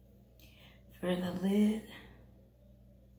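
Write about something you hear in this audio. A middle-aged woman speaks briefly, close by.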